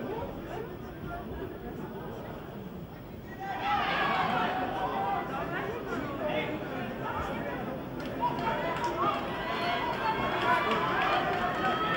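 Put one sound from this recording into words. A large crowd murmurs and then bursts into loud cheering in a big echoing hall.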